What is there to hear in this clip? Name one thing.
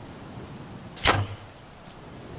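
An arrow is loosed from a bow with a sharp twang.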